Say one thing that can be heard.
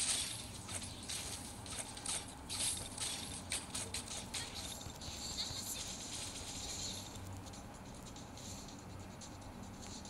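Sword slashes whoosh and clash in quick bursts.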